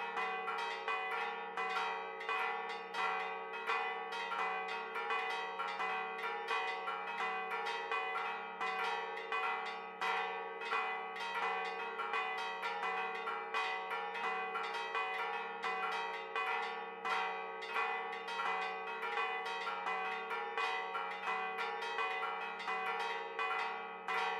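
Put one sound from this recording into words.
Church bells peal rapidly and ring on overhead.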